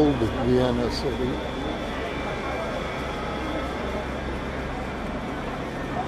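A crowd of people chatters on a busy street outdoors.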